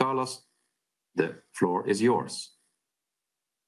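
A middle-aged man speaks calmly through an online call.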